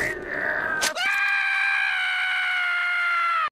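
A cartoon squirrel lets out a long, loud, high scream.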